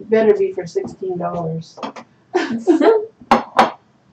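A plate clatters onto a hard counter.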